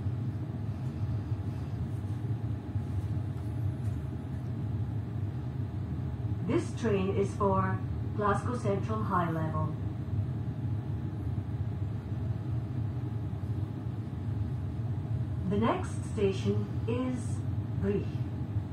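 A passenger train hums steadily while standing still, heard from inside the carriage.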